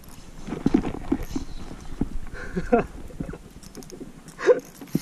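Water splashes gently against a kayak.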